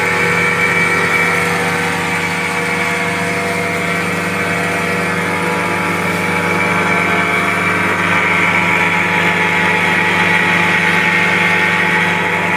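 Water churns and splashes in a boat's wake.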